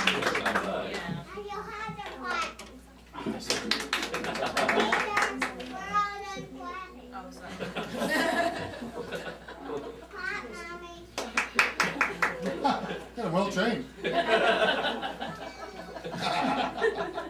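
A middle-aged man speaks with animation to a small audience.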